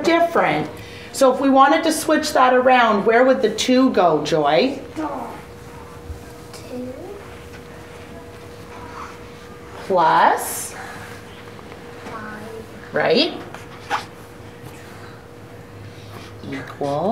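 A woman speaks calmly and clearly to children, close by.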